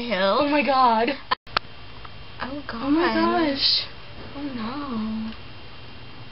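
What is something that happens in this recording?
Young women talk and giggle close by, speaking with animation.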